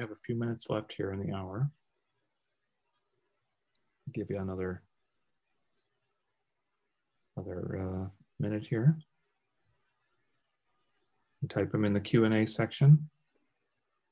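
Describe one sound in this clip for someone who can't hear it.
A man speaks calmly in short phrases over an online call.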